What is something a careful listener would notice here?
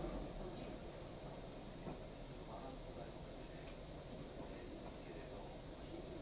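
A horse's hooves clop slowly on the ground.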